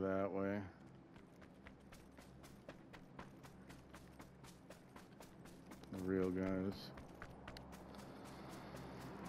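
Footsteps crunch steadily through grass and dirt.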